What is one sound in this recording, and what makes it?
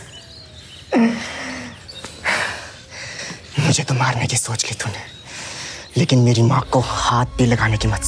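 A young man groans in pain close by.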